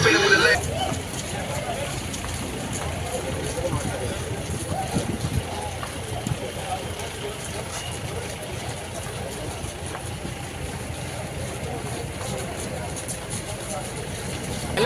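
A crowd of young men chatter and call out outdoors.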